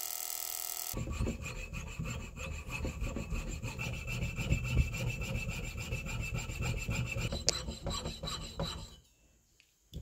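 A fine saw blade rasps back and forth through metal.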